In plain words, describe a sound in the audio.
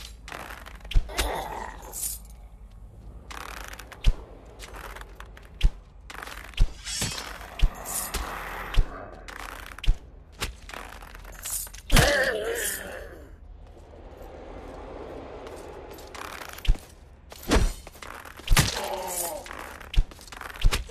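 A bowstring twangs as arrows are loosed, again and again.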